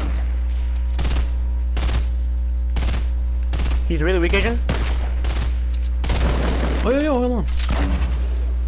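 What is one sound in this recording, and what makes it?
Sharp gunshots crack again and again at a steady pace.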